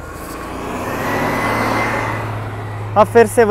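A bus drives past close by.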